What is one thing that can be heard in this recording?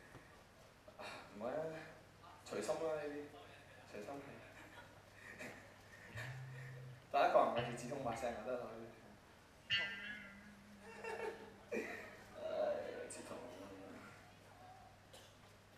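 A young man speaks into a microphone, heard through loudspeakers in a large echoing hall.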